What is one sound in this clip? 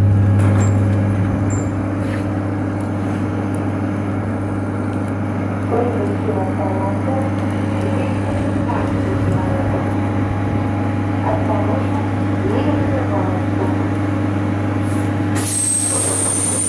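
An electric train hums steadily while standing at a platform.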